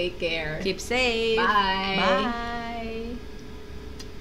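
A woman speaks cheerfully in a high, sing-song voice close to a microphone.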